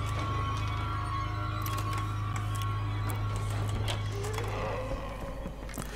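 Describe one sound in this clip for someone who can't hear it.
A metal lock pick clicks and scrapes inside a door lock.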